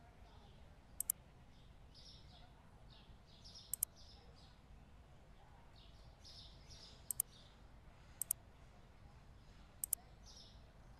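Sharp clicks sound a few times as menu buttons are pressed.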